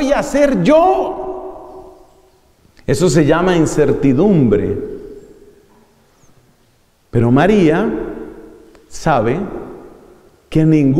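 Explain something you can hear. A man speaks with animation into a microphone, in bursts with pauses, in an echoing room.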